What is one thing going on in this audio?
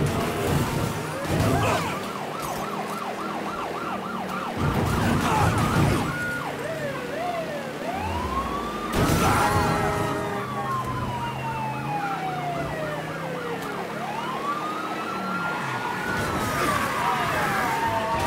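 Cars crash together with loud bangs.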